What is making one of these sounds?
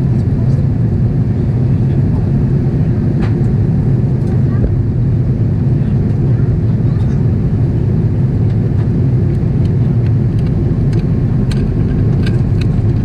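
Jet engines roar with a steady, deep rumble inside an airliner cabin.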